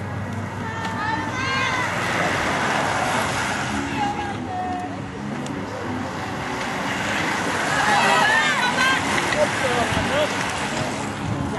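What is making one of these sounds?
Spectators nearby cheer and shout encouragement outdoors.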